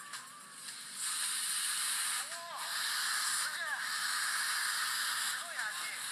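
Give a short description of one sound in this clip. Flames flare up with a loud whoosh and roar.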